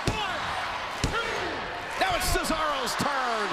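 A referee slaps the mat to count.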